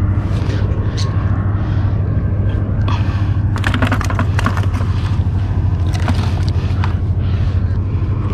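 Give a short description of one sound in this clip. Shoes scuff and shuffle on rough rock.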